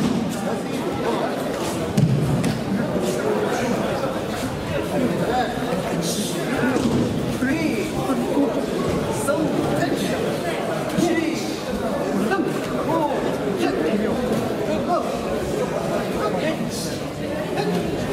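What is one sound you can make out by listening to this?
Bare feet thud and shuffle on mats.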